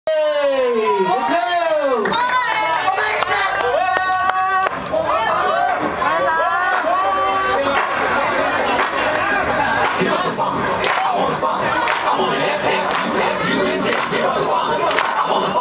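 Loud dance music plays through loudspeakers in a large hall.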